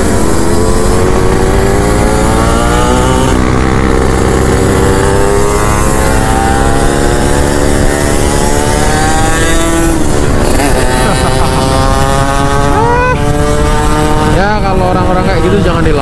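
Other motorbike engines drone nearby.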